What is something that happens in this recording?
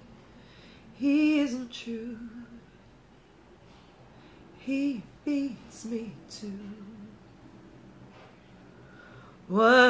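A woman speaks close up, in an expressive, singing voice, with long pauses.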